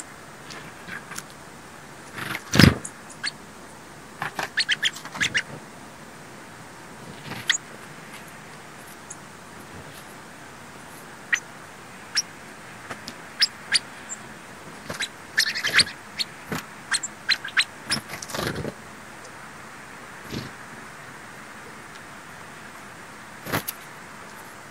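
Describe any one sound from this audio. Small birds chirp and flutter close by.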